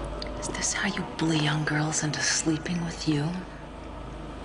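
A woman speaks tensely.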